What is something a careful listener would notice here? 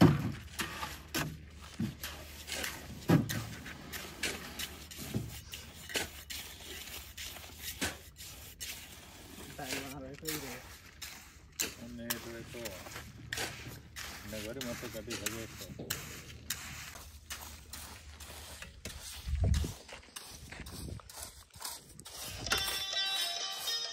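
A trowel scrapes and spreads wet sand.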